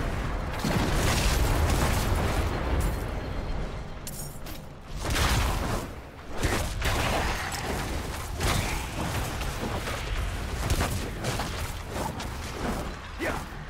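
Fiery explosions boom and crackle in a game.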